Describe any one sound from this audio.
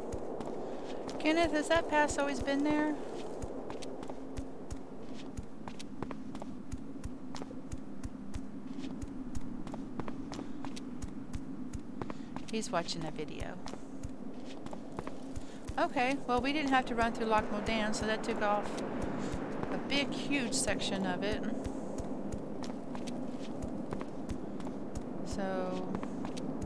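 Footsteps tap steadily on a stone path.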